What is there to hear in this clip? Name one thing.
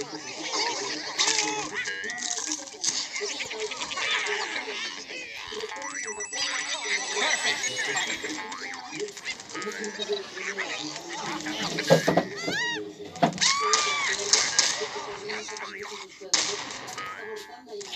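Cartoon crashes and bursts sound as a game character hits obstacles.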